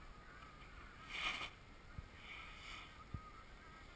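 A snowboard scrapes across snow.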